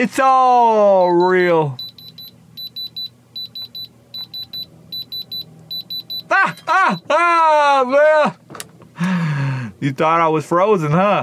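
A young man talks loudly and animatedly close to a microphone.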